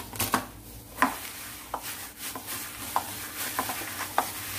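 A plastic-gloved hand squishes and kneads minced meat in a bowl, with crinkling plastic.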